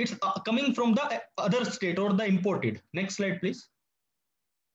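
A young man speaks calmly through an online call microphone.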